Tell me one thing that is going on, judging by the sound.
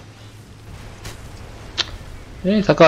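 A shell explodes with a sharp bang.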